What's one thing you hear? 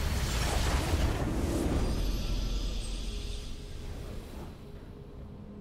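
A triumphant game fanfare swells loudly, then fades away.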